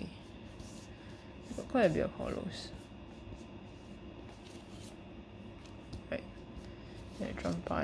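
Playing cards rustle and slap softly onto a table.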